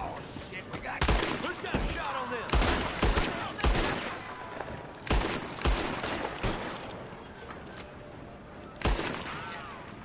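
Gunshots crack inside a confined wooden car.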